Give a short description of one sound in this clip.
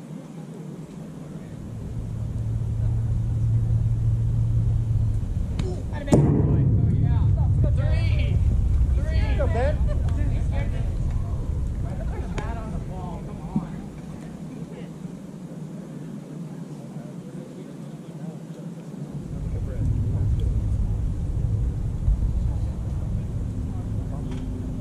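Wind rumbles steadily across the field.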